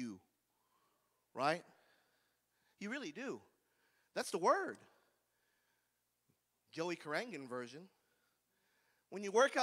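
A man preaches through a microphone in a large hall, speaking in short emphatic phrases with pauses.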